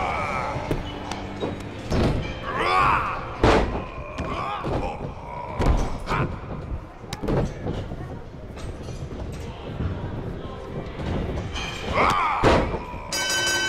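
Bodies slam heavily onto a wrestling mat, again and again.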